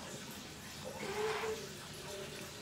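A young woman groans with her tongue out.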